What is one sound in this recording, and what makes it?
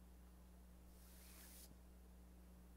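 A flag's fabric rustles and snaps taut.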